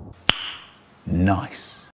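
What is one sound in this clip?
A man says something briefly and with amusement, close to a microphone.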